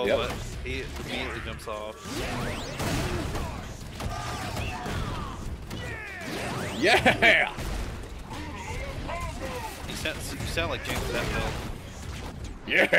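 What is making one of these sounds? Heavy punches and blows land with loud thuds and crashes.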